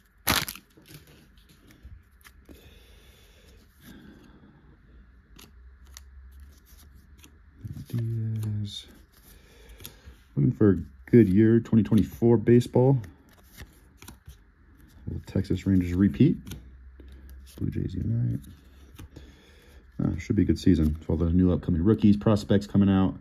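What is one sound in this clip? Trading cards slide and flick softly against each other.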